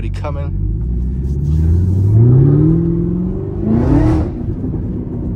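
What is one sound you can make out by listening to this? A car engine revs up, rising in pitch.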